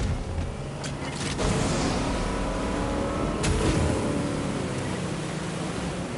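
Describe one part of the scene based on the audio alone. Water splashes against a speeding boat.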